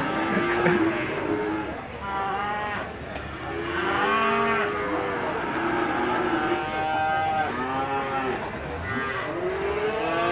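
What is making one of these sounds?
Cattle low and bellow nearby.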